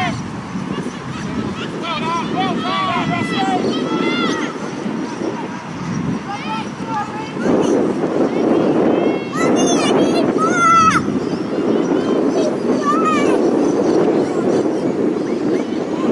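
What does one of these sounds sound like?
Wind blows steadily across an open field.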